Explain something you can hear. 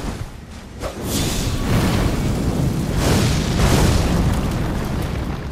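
Flames burst with a loud roaring blast.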